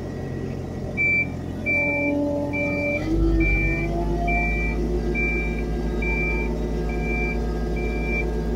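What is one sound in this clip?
An excavator's travel alarm beeps at a steady pace.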